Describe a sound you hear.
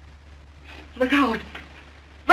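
A man cries out in pain.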